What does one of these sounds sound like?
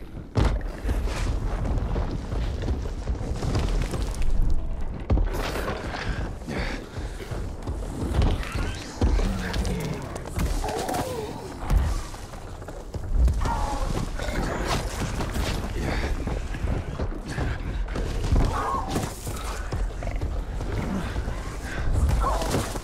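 A giant beast stomps with heavy, thudding footsteps.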